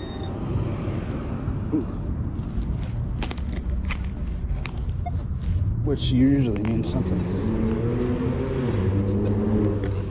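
A hand trowel scrapes and digs into soil.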